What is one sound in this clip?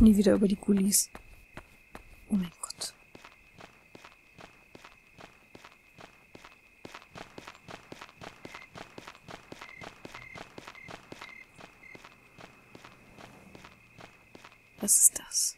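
Light footsteps patter steadily along a path.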